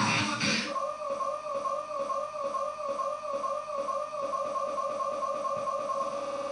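Electronic dance music plays loudly with a steady pulsing beat and a wobbling tone.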